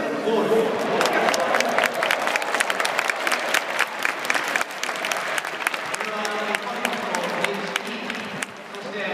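A stadium crowd claps in rhythm.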